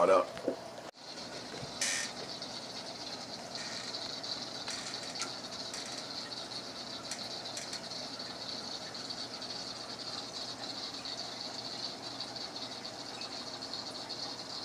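An aquarium filter hums and trickles steadily.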